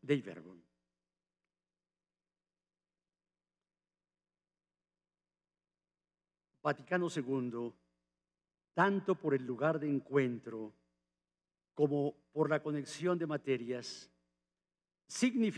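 An elderly man speaks calmly and slowly into a microphone.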